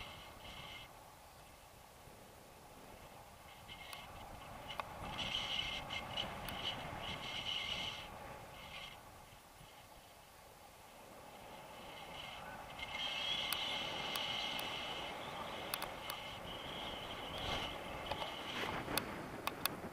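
Wind rushes and buffets loudly past a microphone.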